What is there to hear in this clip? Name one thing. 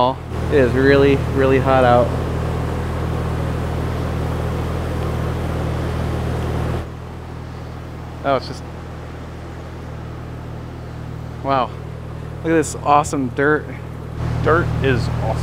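A man talks cheerfully up close outdoors.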